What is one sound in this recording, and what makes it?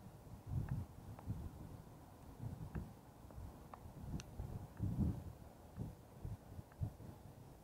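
A bicycle rattles with small clicks and knocks.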